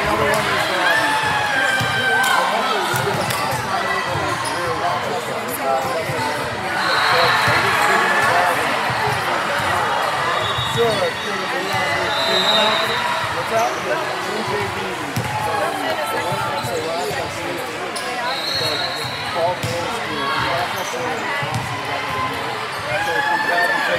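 Many girls and women chatter and call out in a large echoing gym.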